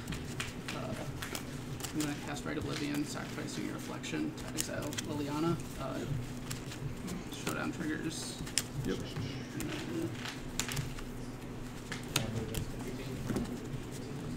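Playing cards are riffled and shuffled by hand.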